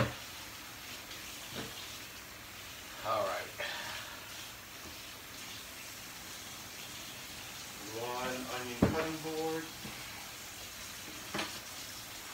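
Food sizzles softly in a pan.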